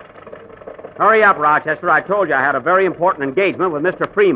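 A man speaks with animation, heard through an old, thin-sounding radio recording.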